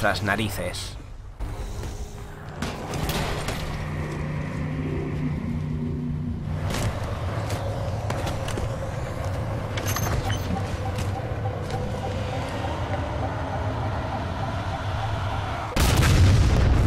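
A deep steady rumble of an engine hums.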